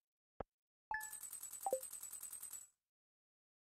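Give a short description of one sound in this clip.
Soft electronic ticks tick rapidly as points add up.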